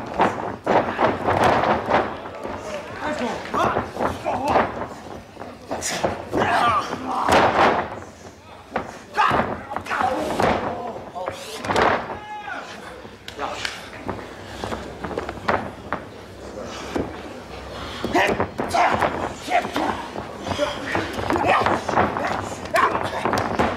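A crowd cheers and shouts in a large hall.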